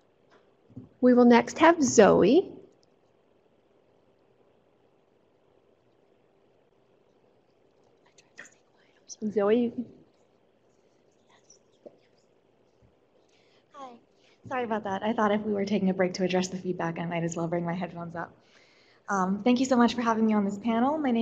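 A woman speaks calmly through a microphone, in short bursts with pauses.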